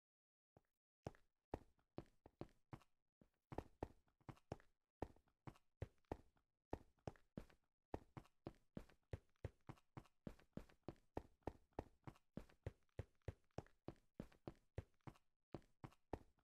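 Footsteps tap quickly and steadily on a hard stone floor.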